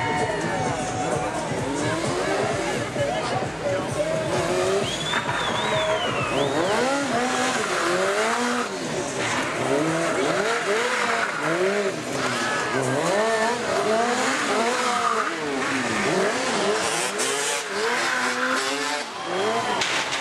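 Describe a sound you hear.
A motorcycle engine revs up and down repeatedly, close by.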